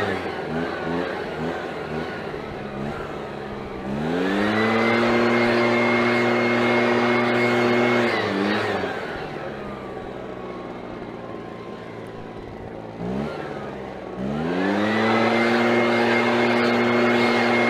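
A leaf blower engine drones loudly, revving up and dropping back to idle.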